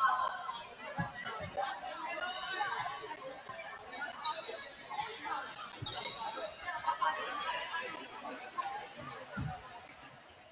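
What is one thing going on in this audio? A volleyball thumps against hands and the floor.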